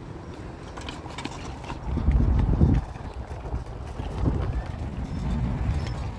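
Small bicycle wheels roll softly over concrete.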